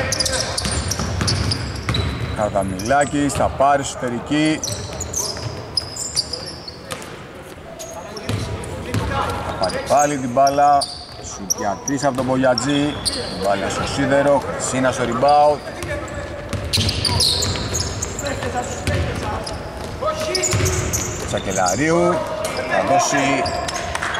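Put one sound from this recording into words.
Basketball shoes squeak on a hardwood court in a large echoing arena.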